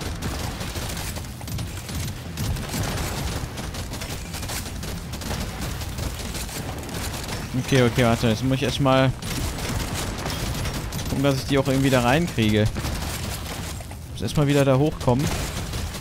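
Low rumbling blasts boom throughout.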